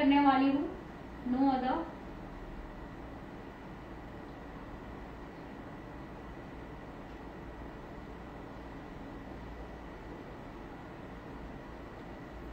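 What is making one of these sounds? Fingertips pat softly against skin.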